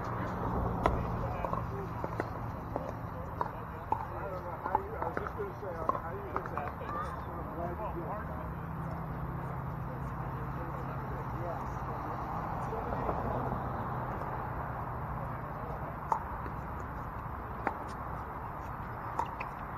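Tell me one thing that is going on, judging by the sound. Paddles pop sharply against a plastic ball.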